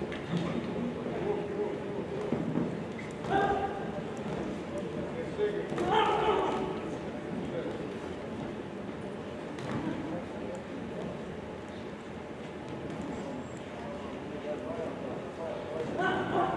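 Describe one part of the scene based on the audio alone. Spectators shout and cheer.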